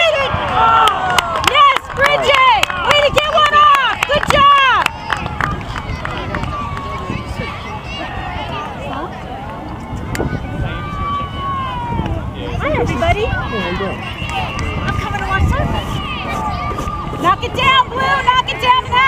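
Young girls shout and call out across an open field.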